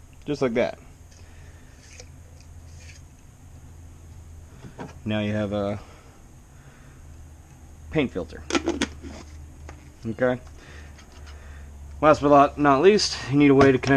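Plastic parts knock and rattle as they are handled.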